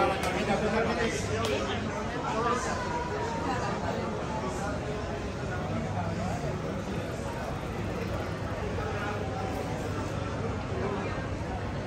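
Footsteps pass on a paved street.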